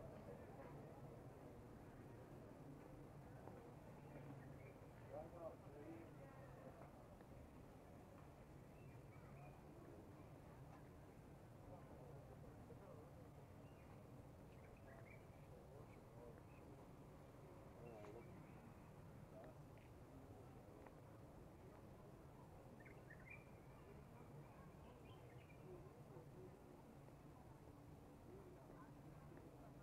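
Men and women murmur and chat quietly in the distance outdoors.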